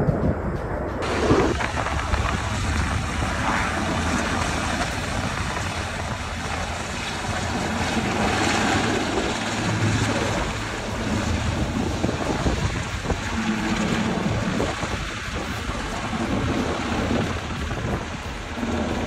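A helicopter hovers nearby with a steady thudding rotor.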